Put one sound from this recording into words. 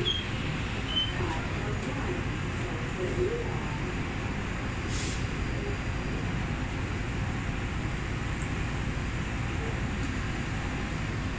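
A metro train rumbles steadily along the tracks.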